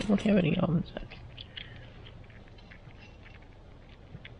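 A chipmunk nibbles and cracks sunflower seeds.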